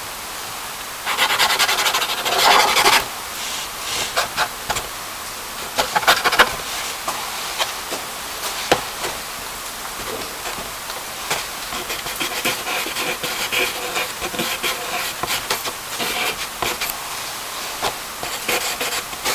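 A pencil scratches and rubs on paper.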